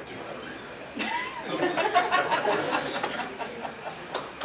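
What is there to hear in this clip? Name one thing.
Men and women in the audience chatter and call out nearby.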